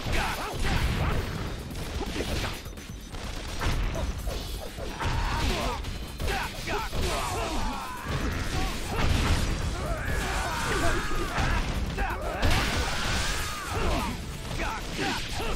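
Swords slash and clang in rapid, heavy strikes.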